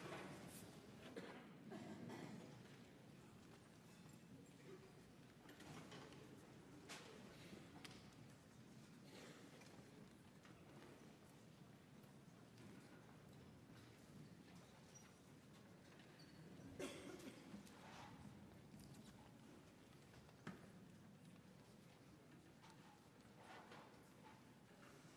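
An audience murmurs quietly in a large hall.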